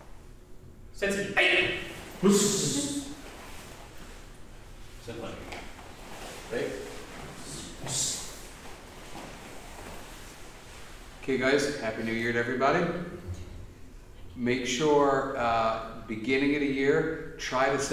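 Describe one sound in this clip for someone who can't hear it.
A man calls out loud commands in an echoing room.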